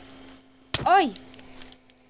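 A block breaks with a short crunch.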